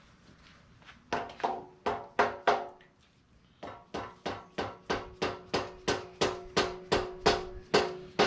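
A rasp scrapes along a wooden ax handle in rhythmic strokes.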